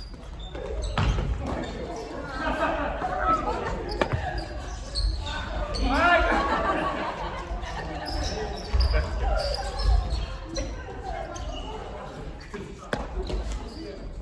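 The sound echoes as in a large hall.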